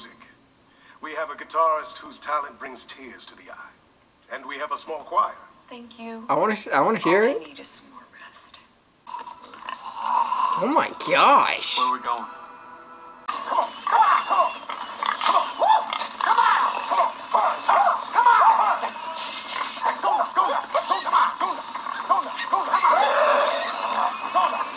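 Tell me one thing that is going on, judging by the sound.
A young man talks animatedly, close to the microphone.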